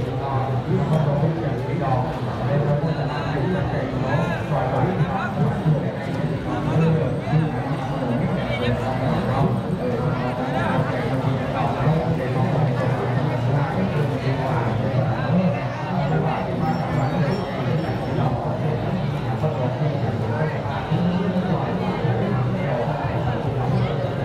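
A large outdoor crowd of men and women chatters all around.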